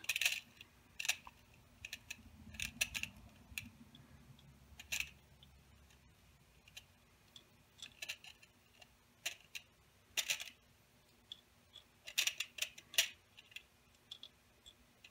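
Small metal balls click and rattle in a plastic tray.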